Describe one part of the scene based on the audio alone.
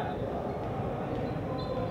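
A volleyball bounces on a hard floor.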